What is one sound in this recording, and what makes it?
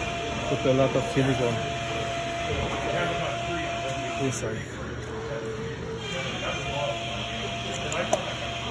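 A caulking gun squeezes out sealant with soft clicks.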